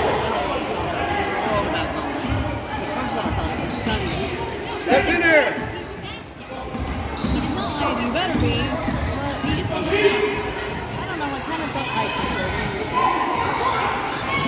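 Spectators chatter and call out in an echoing hall.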